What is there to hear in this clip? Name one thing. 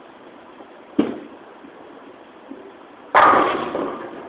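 A bowling ball thuds onto a wooden lane and rolls away.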